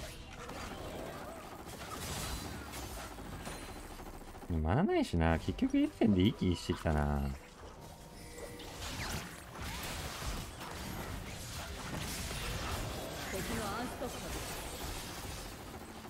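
Game combat sound effects clash and chime throughout.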